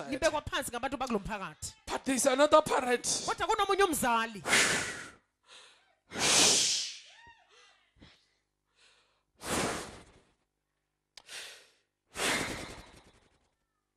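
A man speaks with emotion into a microphone in an echoing hall.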